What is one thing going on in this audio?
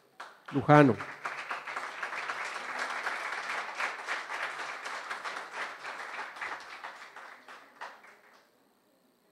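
A small group of people applaud.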